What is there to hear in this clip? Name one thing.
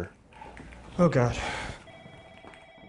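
A young man answers nervously close by.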